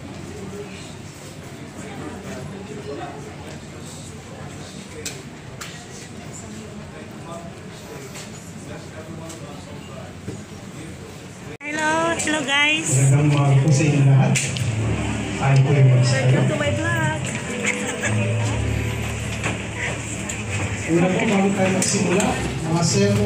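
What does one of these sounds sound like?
A crowd of people chatters and murmurs indoors.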